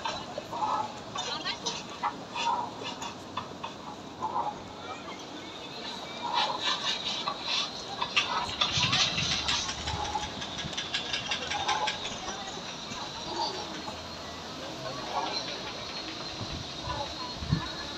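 A crowd of people chatters in the distance outdoors.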